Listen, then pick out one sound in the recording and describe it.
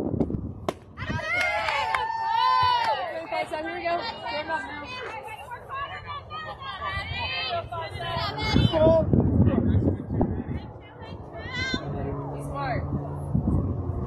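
Young girls chant and cheer loudly nearby.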